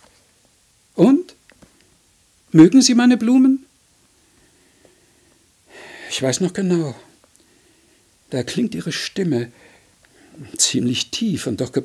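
An elderly man reads aloud expressively into a microphone, with pauses.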